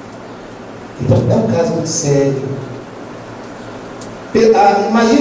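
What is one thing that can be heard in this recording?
A man speaks with animation into a microphone, heard through a loudspeaker in an echoing hall.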